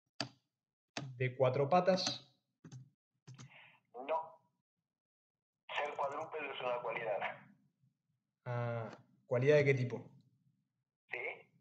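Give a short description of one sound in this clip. A young man speaks calmly into a microphone, with pauses between phrases.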